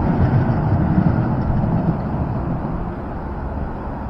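A tram rolls along the street with a low rumble.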